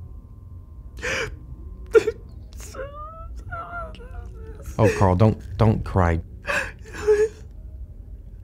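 A man exclaims and laughs with surprise.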